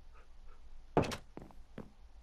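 A wooden door swings shut with a clunk.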